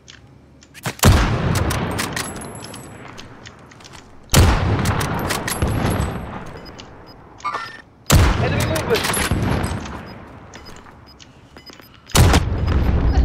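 A rifle fires loud single shots, each echoing and slowly fading.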